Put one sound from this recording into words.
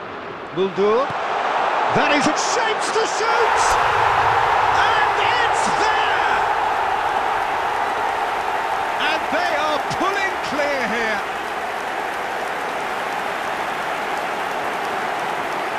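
A stadium crowd roars and cheers loudly.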